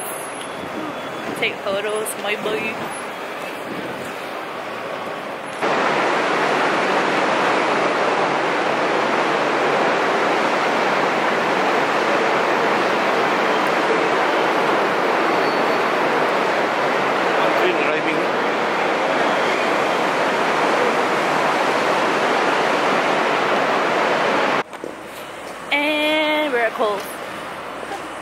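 A young woman talks close by, in a lively way.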